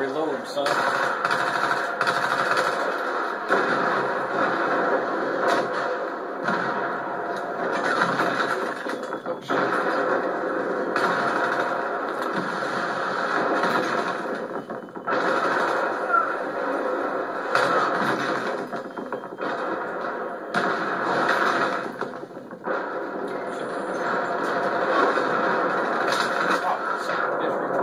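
Gunfire rattles in quick bursts through a loudspeaker.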